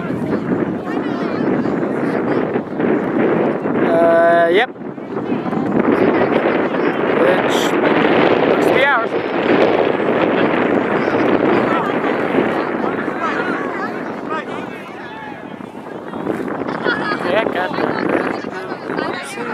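Young women shout and call to one another outdoors.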